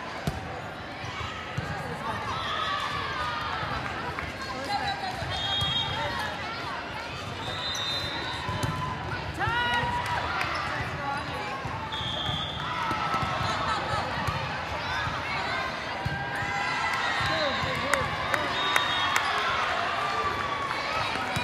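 A volleyball is struck with hard smacks.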